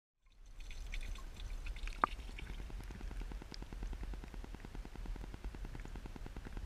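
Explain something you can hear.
Water bubbles and laps close by.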